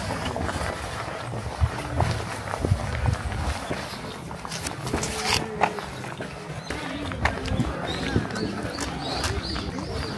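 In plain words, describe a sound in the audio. Footsteps crunch along a paved path outdoors.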